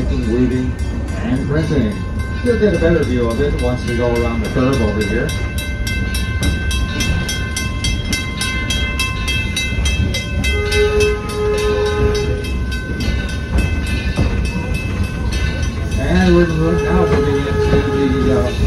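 A crossing bell rings rapidly.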